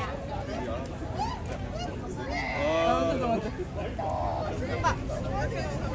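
A young man and a young woman talk close by.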